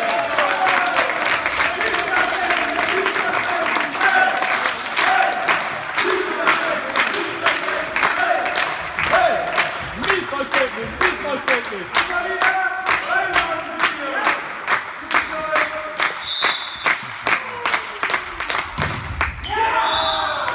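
A spectator claps hands in a fast, steady rhythm close by.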